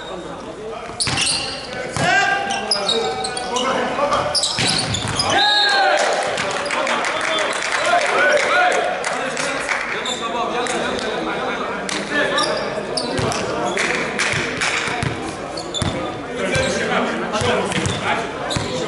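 A volleyball smacks off hands and arms with sharp thuds.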